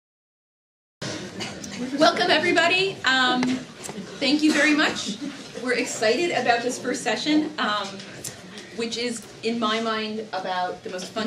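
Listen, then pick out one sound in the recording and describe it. A middle-aged woman speaks calmly nearby.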